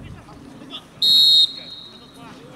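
A referee's whistle blows once, short and shrill.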